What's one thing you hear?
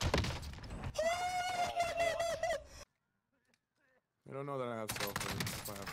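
A young man shouts excitedly through a microphone.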